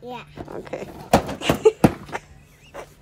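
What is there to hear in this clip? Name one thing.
A cardboard box thumps and rustles as it is handled.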